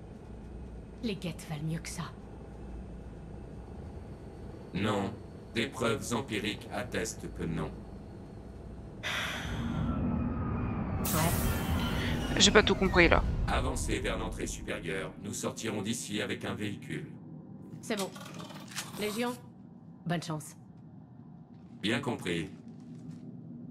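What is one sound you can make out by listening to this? A man and a woman talk calmly, heard as voices in a game.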